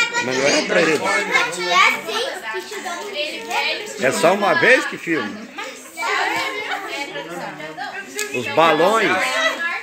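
Women talk with animation close by.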